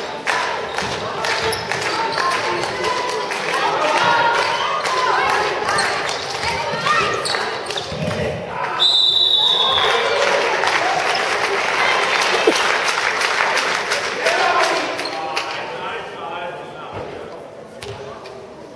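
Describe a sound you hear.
Sneakers squeak sharply on a hard floor, echoing in a large hall.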